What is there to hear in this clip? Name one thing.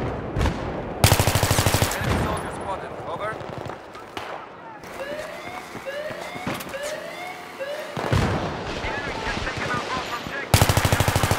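A rifle fires short, rapid bursts at close range.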